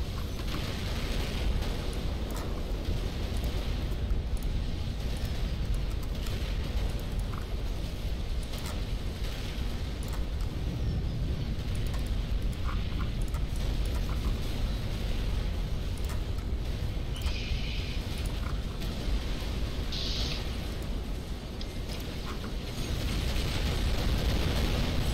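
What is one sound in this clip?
A low rumble of battle noise runs throughout.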